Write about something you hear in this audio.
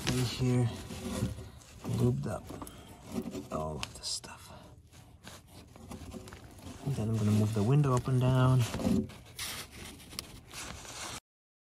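Metal parts inside a car door rattle and click under handling.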